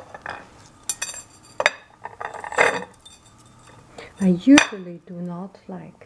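A small metal strainer clinks against a ceramic dish.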